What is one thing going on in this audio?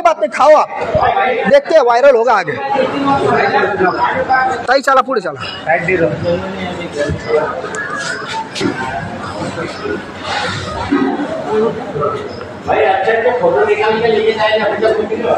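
A crowd of men shouts and argues loudly close by.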